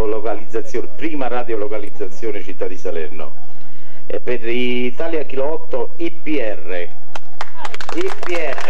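A man speaks into a microphone over a loudspeaker, calmly announcing.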